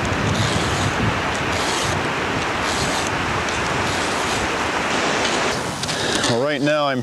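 A metal file rasps steadily against a saw chain.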